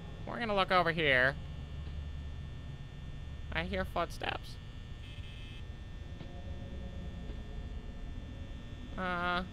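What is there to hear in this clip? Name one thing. A desk fan whirs with a low steady hum.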